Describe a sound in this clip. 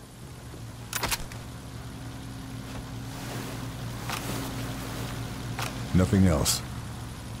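A body thuds heavily to the ground.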